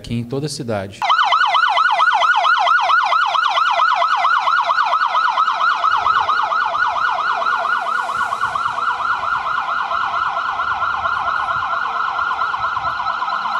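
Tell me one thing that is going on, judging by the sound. A police siren wails rapidly up and down, close by.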